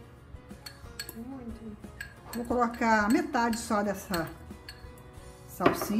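A spoon scrapes herbs out of a small glass jar.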